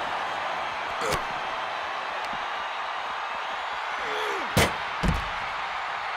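Heavy blows thud as wrestlers strike each other.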